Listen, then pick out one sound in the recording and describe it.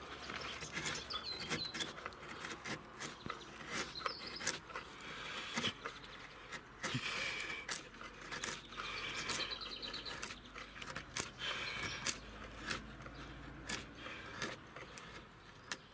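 A steel blade scrapes and shaves across wood in short, repeated strokes.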